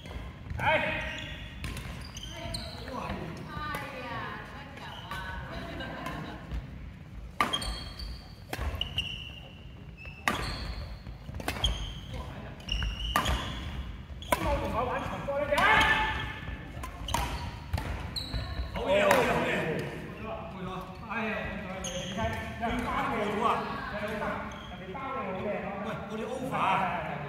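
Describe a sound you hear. Adult men talk and call out in a large echoing hall.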